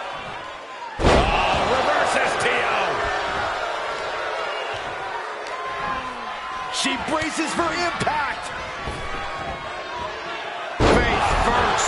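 A heavy body slams onto the ring mat with a loud thud.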